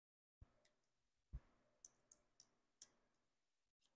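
A small battery clicks and scrapes into a plastic compartment.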